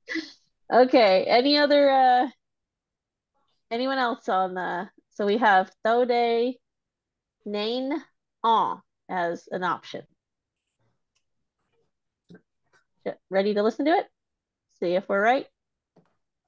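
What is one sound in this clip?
A woman speaks calmly and clearly over an online call.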